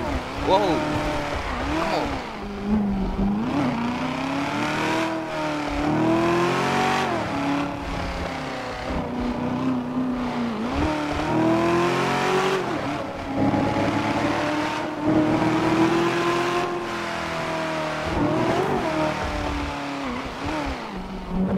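Tyres squeal as a car skids around a corner.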